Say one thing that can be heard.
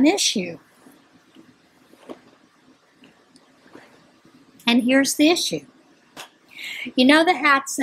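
An older woman speaks with animation close to a microphone.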